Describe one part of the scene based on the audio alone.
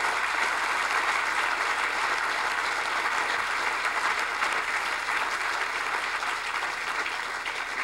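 A large crowd sings together.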